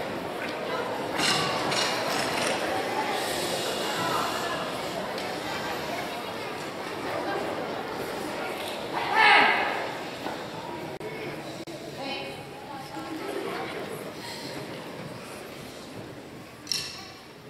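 A large choir of young voices sings together in a big echoing hall.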